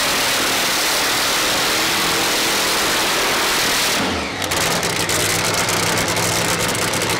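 Tyres screech as they spin on the pavement.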